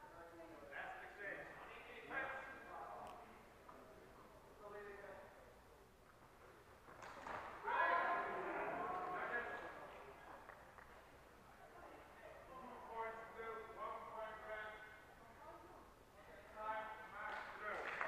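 Adults talk and call out across a large echoing hall.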